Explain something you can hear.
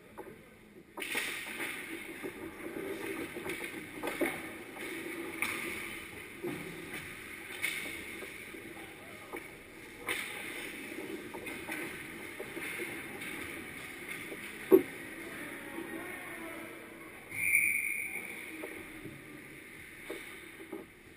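Ice skates scrape and swish across the ice in a large echoing rink.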